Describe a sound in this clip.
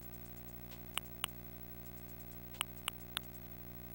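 Short bright menu blips click several times.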